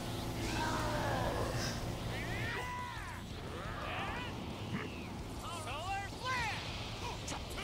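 Energy blasts whoosh and crackle in a fight.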